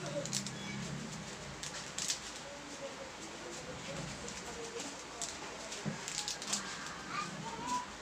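Powder is tipped from a small packet into a pot.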